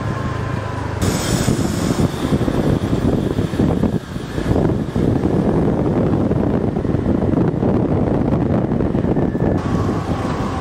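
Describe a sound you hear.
Motorbikes and cars pass by on a street.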